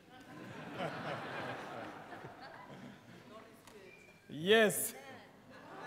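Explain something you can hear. An elderly man speaks with a laugh in a large echoing hall.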